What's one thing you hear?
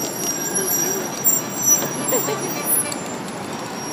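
A spray can rattles as it is shaken.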